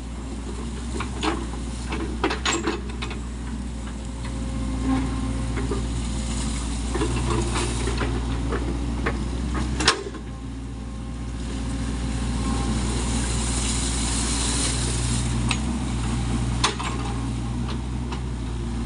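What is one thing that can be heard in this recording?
A mini excavator's diesel engine runs under load.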